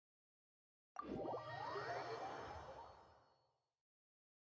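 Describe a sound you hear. A magical chime swells and fades during a teleport.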